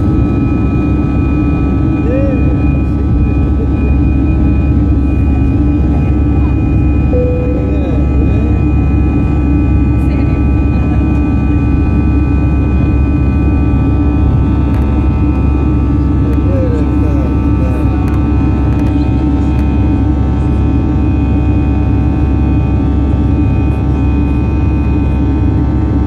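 Air rushes past the cabin with a constant hiss.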